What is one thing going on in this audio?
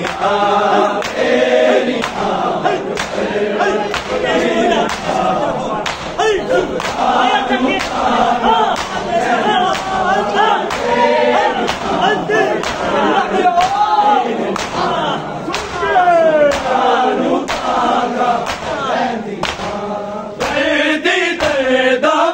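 Men beat their chests in a steady rhythm.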